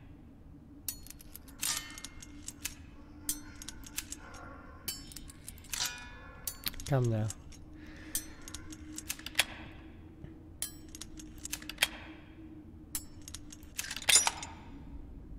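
Small metal lock pins click sharply, one after another.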